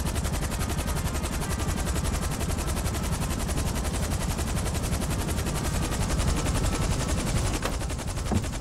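A helicopter's rotor thumps and whirs loudly as it lands.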